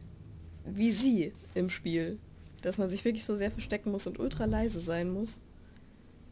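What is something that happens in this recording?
A young woman talks with animation into a microphone, close by.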